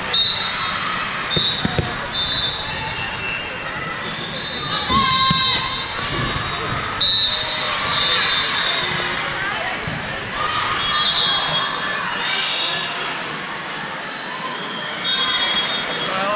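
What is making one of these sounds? A crowd murmurs and chatters throughout.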